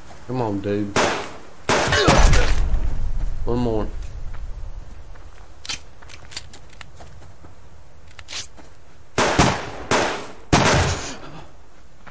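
A pistol fires loud single shots.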